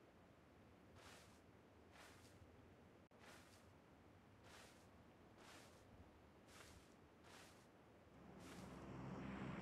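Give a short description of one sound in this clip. Footsteps rustle slowly through tall grass.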